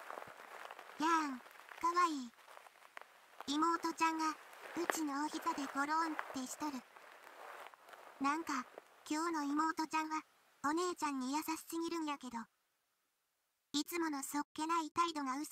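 A young woman's synthesized voice speaks cheerfully and brightly through a microphone.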